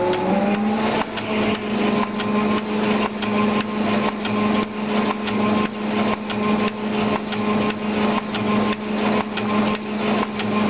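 A machine clatters with quick, rhythmic knocks.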